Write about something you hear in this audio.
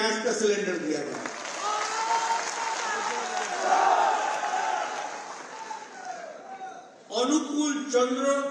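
An elderly man speaks loudly and with emphasis into a microphone, heard over loudspeakers.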